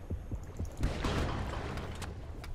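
A speargun fires with a muffled underwater thud.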